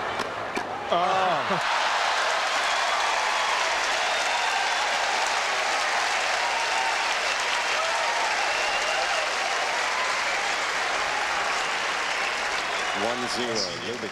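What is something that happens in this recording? A large outdoor stadium crowd applauds.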